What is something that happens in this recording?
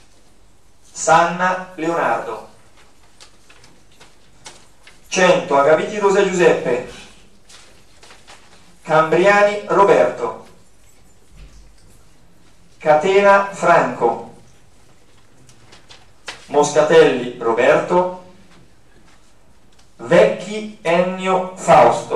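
A man speaks into a microphone in short bursts, heard through loudspeakers in a room.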